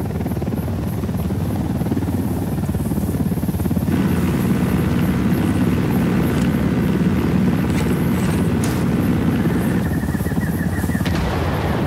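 A helicopter's rotor thumps and drones steadily overhead.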